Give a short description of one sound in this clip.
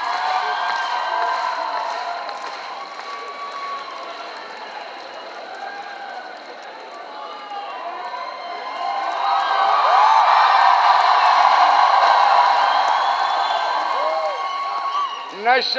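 Many people clap their hands.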